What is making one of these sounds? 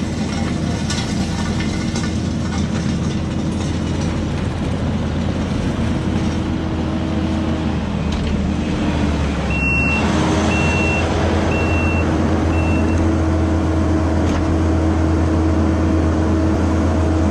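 A tracked loader's diesel engine rumbles steadily and grows louder as it drives closer.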